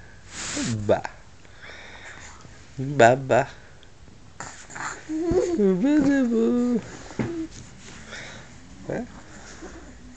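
A baby coos and babbles close by.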